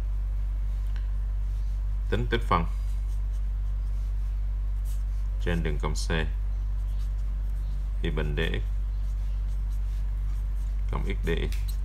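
A felt-tip pen scratches softly on paper.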